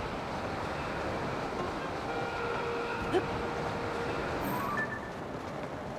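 Wind rushes steadily past a falling figure.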